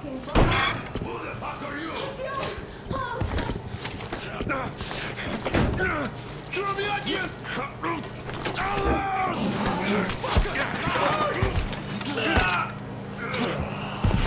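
A man shouts angrily at close range.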